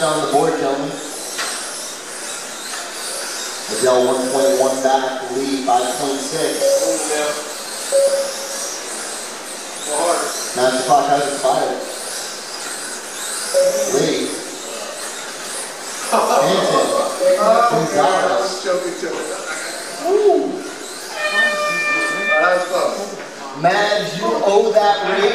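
Men talk and call out in a room with some echo.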